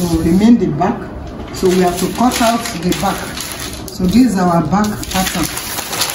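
Stiff paper rustles as it is lifted and moved.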